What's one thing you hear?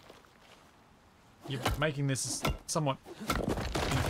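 Wooden beams knock and thud into place.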